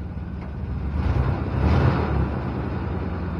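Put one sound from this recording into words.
A truck engine revs briefly.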